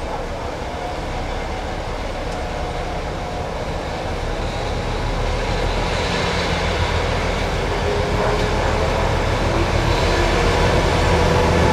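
A train approaches along the track, its rumble growing louder.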